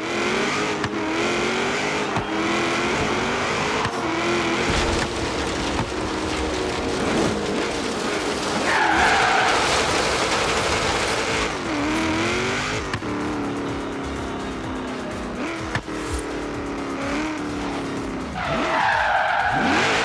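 A car engine roars and revs, shifting gears.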